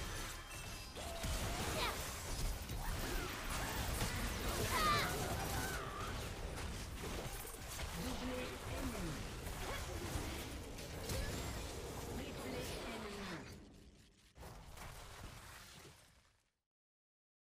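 Game spells blast and crackle in quick bursts.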